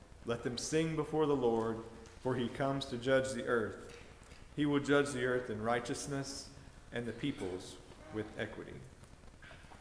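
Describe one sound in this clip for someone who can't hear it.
An elderly man speaks calmly into a microphone in a large echoing room.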